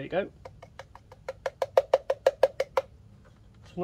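A sanding disc is twisted onto a sander with quick ratcheting clicks.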